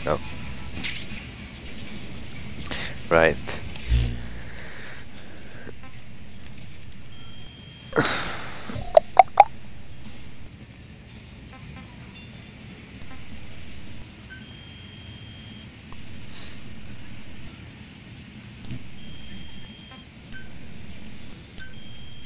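Short electronic beeps and chirps sound from a handheld device.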